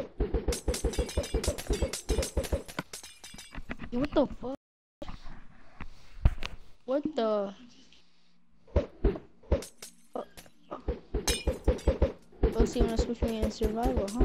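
A glass bottle shatters with a splash.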